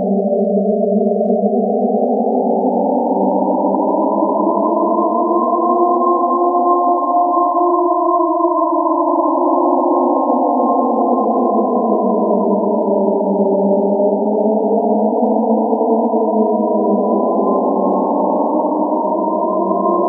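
A dense cluster of synthesized drone tones hums steadily, the pitches slowly sliding up and down.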